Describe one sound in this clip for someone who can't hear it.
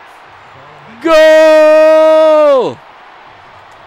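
A man shouts loudly and triumphantly into a close microphone.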